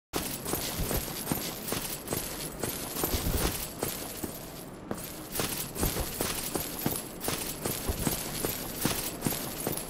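Heavy armoured footsteps run quickly over stone.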